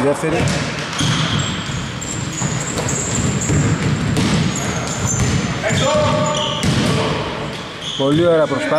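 Sneakers squeak sharply on a hardwood court in an echoing gym.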